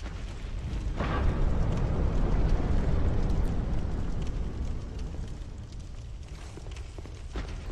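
A heavy stone door grinds slowly open with a deep rumble.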